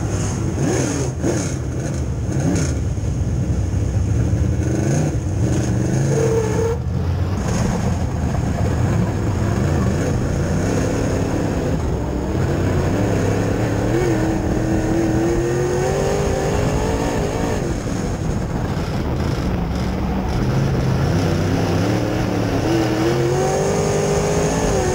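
A race car engine roars loudly from inside the cockpit, revving up and down.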